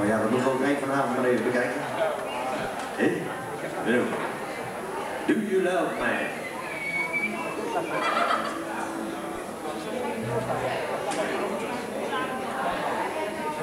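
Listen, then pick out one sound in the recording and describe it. A band plays live music with guitars and drums in an echoing hall.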